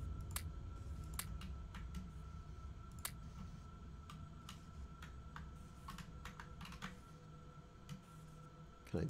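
Game machinery hums and whirs steadily, with short clicks.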